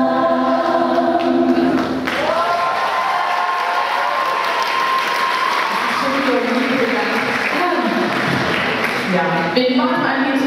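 Young women sing together through microphones in a large echoing hall.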